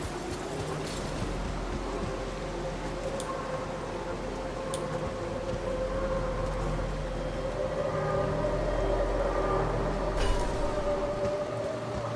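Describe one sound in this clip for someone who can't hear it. A low electronic drone hums steadily.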